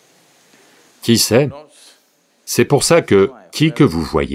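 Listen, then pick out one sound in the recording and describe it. An elderly man speaks calmly and expressively into a close microphone.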